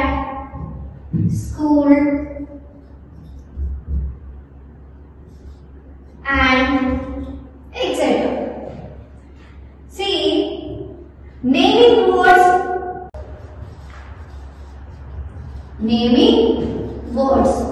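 A young woman speaks clearly and at a steady pace, as if teaching.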